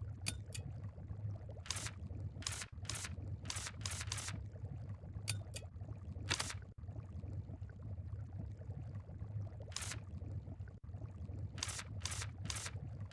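Short soft game menu blips sound as a selection moves between items.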